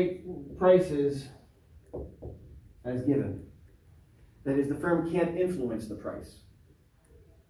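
A man speaks clearly and calmly, slightly muffled.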